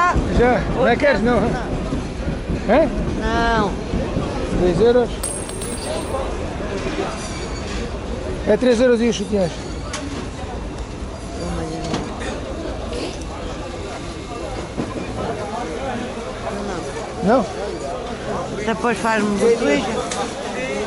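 Voices of a bustling crowd chatter nearby.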